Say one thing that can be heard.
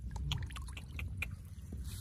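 A fish flaps and splashes in a man's hand.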